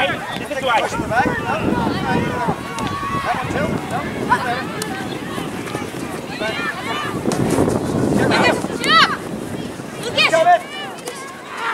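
Spectators call out and cheer from the sidelines.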